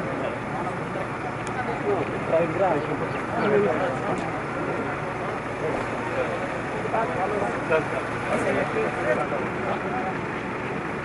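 A crowd of men chatter close by outdoors.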